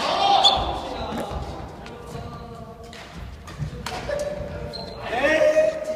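Sports shoes squeak on a wooden court floor in an echoing hall.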